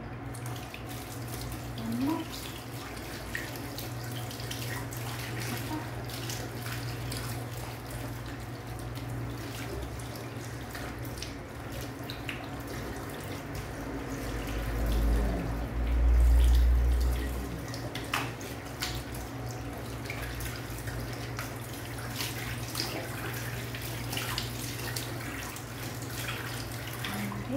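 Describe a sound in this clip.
Wet fur squelches as hands scrub a small dog.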